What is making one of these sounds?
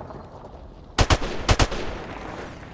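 Several loud rifle shots ring out in quick succession.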